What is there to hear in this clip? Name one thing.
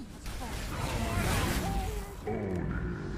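Electric zaps crackle loudly.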